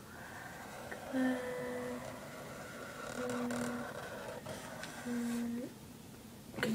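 A young woman hums softly close by.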